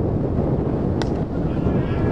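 A cricket bat hits a ball with a sharp crack.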